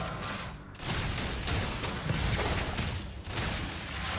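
Magic spells crackle and whoosh in a fight.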